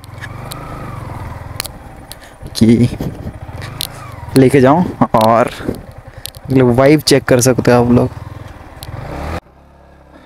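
A motorcycle engine idles with a low steady rumble.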